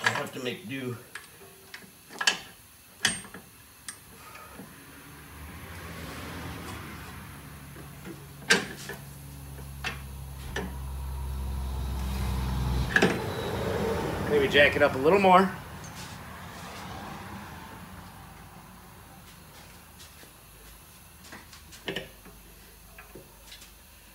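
Metal parts clank and knock.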